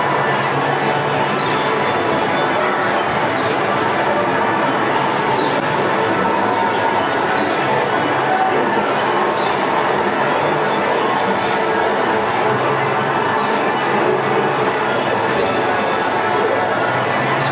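Cheerful carousel music plays steadily from a turning merry-go-round.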